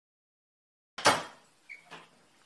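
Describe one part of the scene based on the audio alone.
A door shuts.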